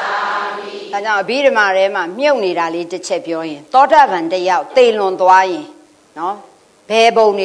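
A middle-aged woman speaks with animation through a microphone.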